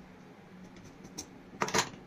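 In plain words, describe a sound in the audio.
Scissors snip fabric.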